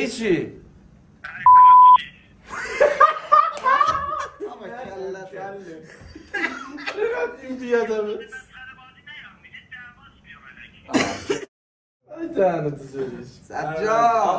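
Young men laugh loudly.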